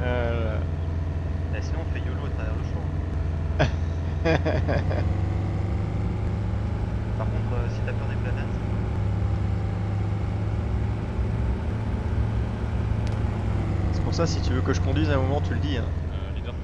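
A vehicle engine rumbles steadily while driving over a dirt road.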